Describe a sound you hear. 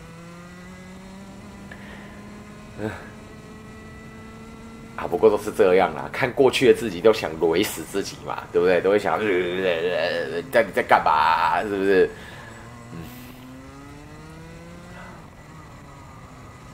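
A kart engine hums steadily, rising and falling in pitch.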